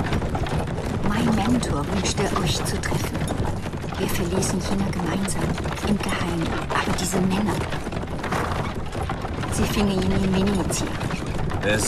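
A young woman speaks calmly and quietly.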